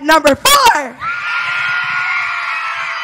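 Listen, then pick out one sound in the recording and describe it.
A crowd of children cheers and screams.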